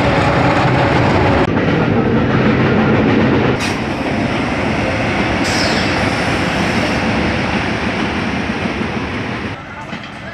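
A diesel train rumbles past on the tracks.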